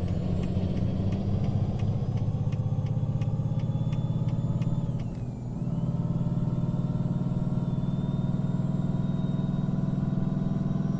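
A truck engine drones steadily and dips briefly.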